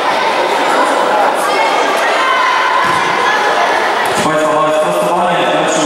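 A crowd of spectators chatters throughout.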